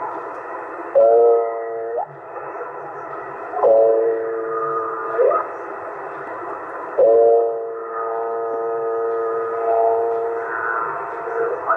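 A radio receiver gives out short steady whistling tones as it is tuned.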